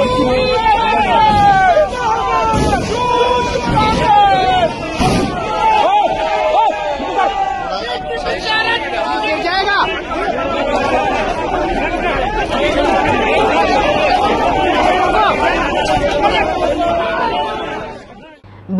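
A crowd of men shout and chant loudly close by.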